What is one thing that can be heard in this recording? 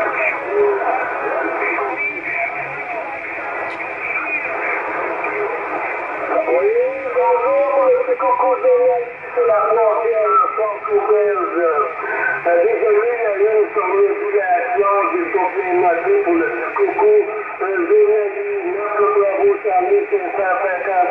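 A radio receiver hisses and crackles with static through its loudspeaker.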